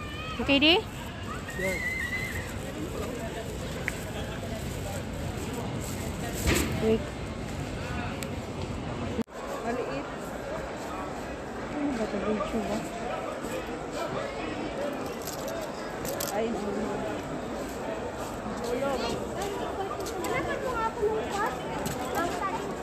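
A young woman talks close by, casually.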